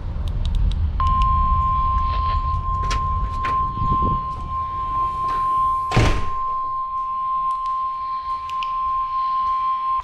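A weather radio sounds a long, steady high warning tone.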